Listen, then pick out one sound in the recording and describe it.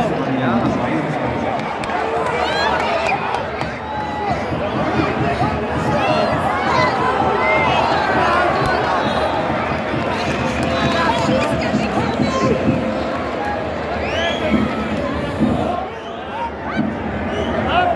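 A large stadium crowd roars, sings and chants loudly outdoors.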